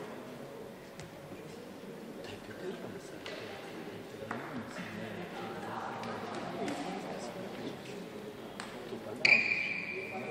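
Rackets strike a shuttlecock in quick sharp pops in a large echoing hall.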